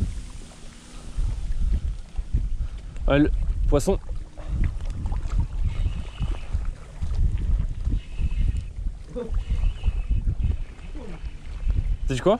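Water laps and splashes close by.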